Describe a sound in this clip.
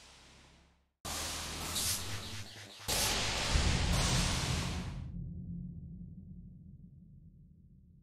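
A spaceship engine roars loudly and slowly fades away.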